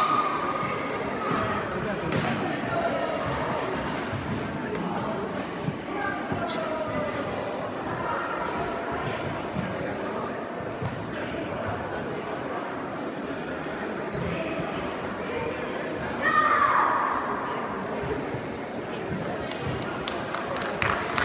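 Bare feet thud and slap on a padded mat.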